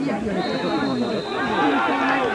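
A referee's whistle blows a long steady blast.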